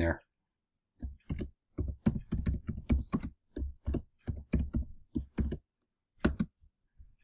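A keyboard clicks with quick typing.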